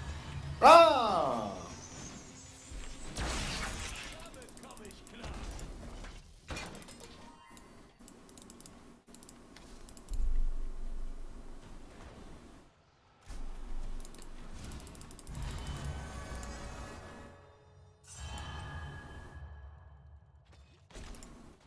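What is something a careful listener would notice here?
Video game combat effects zap and clash.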